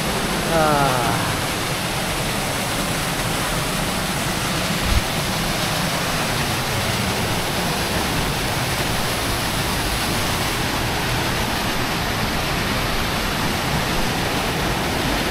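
A waterfall rushes and splashes steadily nearby.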